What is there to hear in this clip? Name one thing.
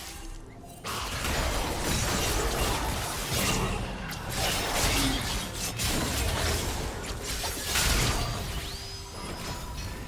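Game spells whoosh and blast as characters fight.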